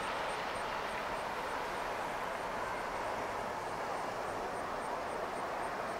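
Water laps gently against a hull.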